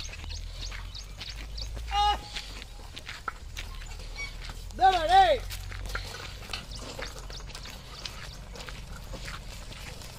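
Wooden cart wheels creak and rattle.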